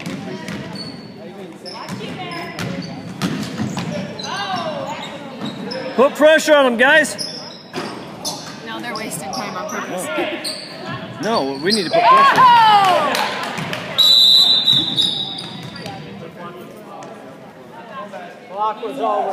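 A basketball bounces on the court floor.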